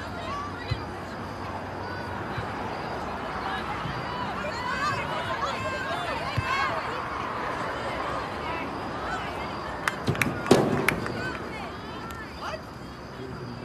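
Spectators chatter and call out nearby outdoors.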